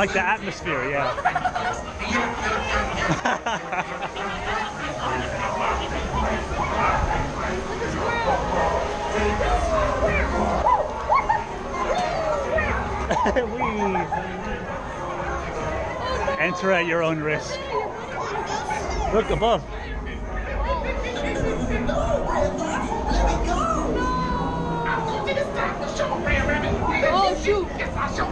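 A crowd of children and adults chatter and call out excitedly nearby.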